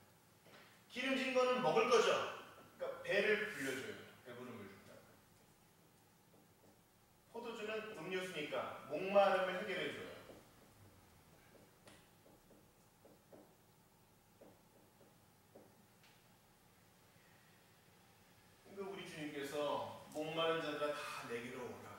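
A man lectures calmly into a microphone, in bursts with pauses.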